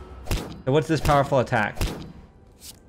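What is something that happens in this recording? A game's blow lands on a shield with a dull thud.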